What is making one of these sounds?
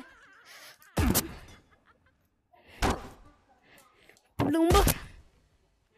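Heavy blows land with loud thuds and smacks.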